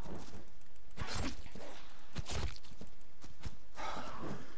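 An axe strikes flesh with heavy thuds.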